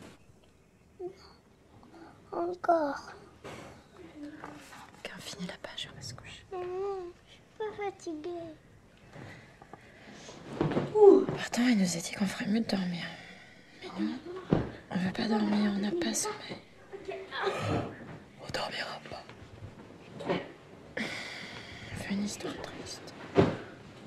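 A young woman talks softly and close by.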